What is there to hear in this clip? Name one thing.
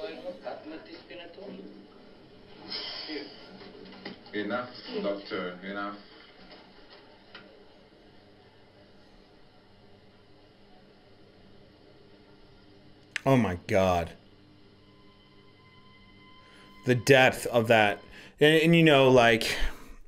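A man talks with animation into a handheld microphone, at times loudly.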